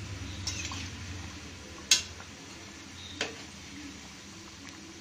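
Oil sizzles and bubbles steadily in a pan.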